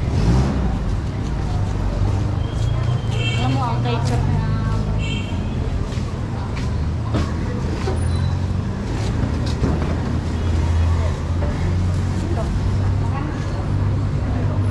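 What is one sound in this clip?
Motorcycle engines rumble steadily nearby.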